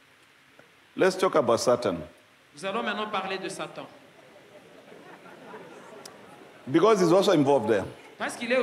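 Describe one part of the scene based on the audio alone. A man speaks slowly through a microphone, with long pauses.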